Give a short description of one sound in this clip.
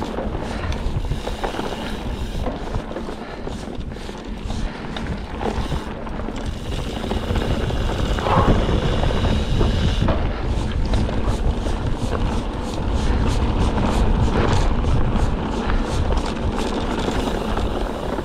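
Wind rushes and buffets loudly past a moving rider.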